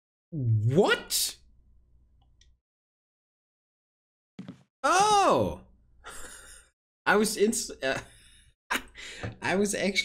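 A man talks and exclaims animatedly into a close microphone.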